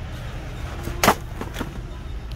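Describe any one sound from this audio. A shopping cart rattles as it rolls.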